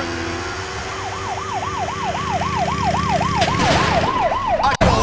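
A motorbike siren wails close by.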